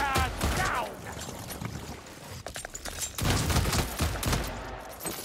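A pistol fires a rapid series of loud shots.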